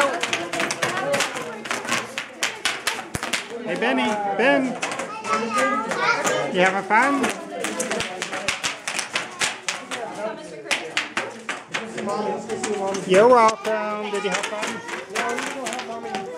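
Bubble wrap pops and crackles rapidly underfoot.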